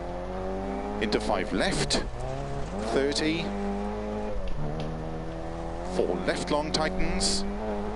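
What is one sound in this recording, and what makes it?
Tyres crunch and skid on gravel.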